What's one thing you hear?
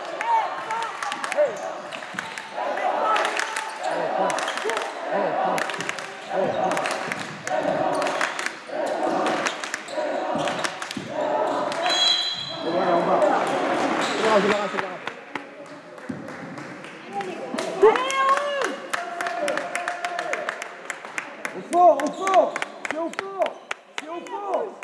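A basketball bounces on the floor in an echoing hall.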